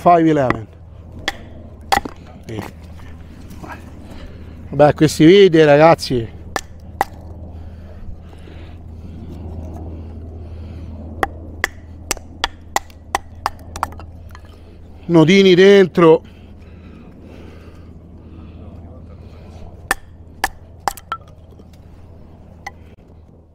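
A wooden stick knocks sharply on the back of a knife blade.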